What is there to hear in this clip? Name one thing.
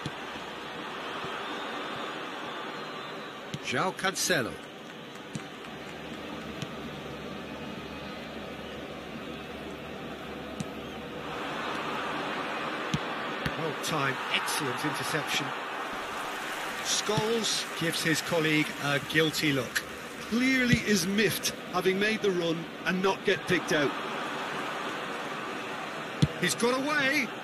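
A large stadium crowd murmurs and cheers steadily.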